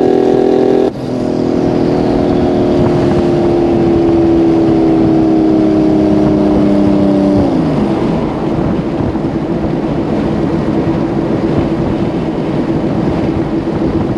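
A car engine winds down and then idles.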